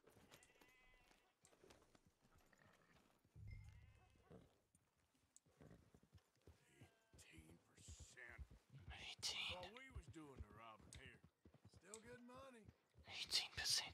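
A horse's hooves clop steadily on a dirt track.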